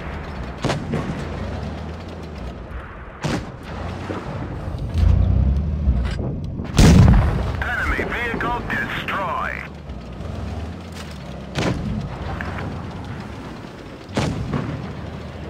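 A tank cannon fires with sharp, loud booms.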